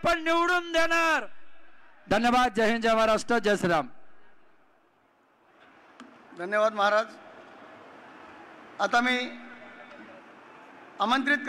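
A middle-aged man speaks forcefully into a microphone over loudspeakers, with pauses between phrases.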